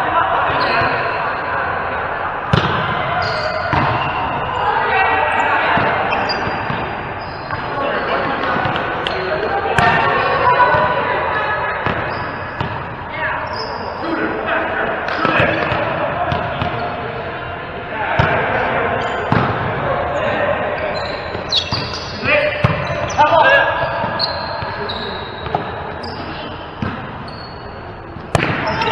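Adult men and women call out to each other in an echoing hall.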